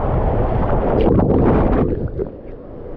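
Water splashes loudly into a pool.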